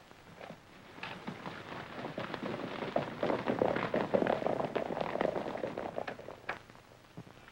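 Horses' hooves clatter as riders gallop away.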